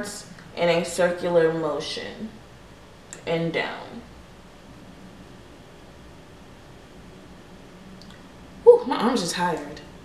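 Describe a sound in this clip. A young woman talks casually close to a microphone.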